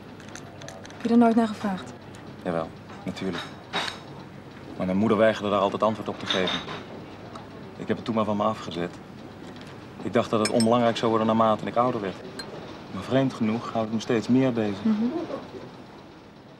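A man speaks calmly and earnestly nearby.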